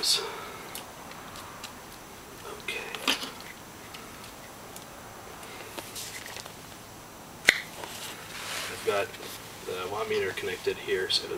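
Plastic connectors click and clatter as wires are handled close by.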